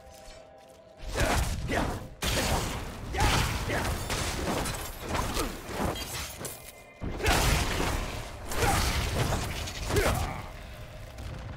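Loud fiery blasts and clashing from a video game burst out repeatedly.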